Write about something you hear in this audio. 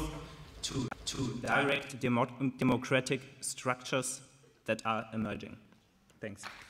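A young man speaks into a microphone in a hall.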